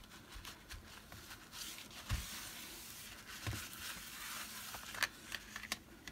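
A sponge dabs softly on paper.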